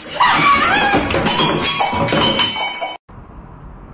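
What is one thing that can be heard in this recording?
A woman laughs loudly close by.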